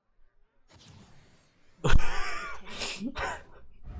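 A young man exclaims with excitement into a microphone.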